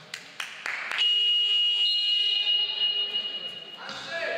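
A referee's whistle blows a long, shrill blast.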